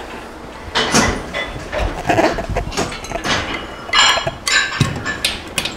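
A metal bar clanks against a weight stand.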